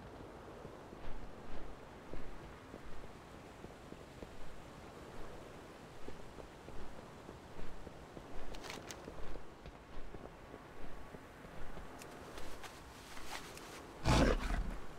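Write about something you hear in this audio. Quick footsteps run across hard stone floors.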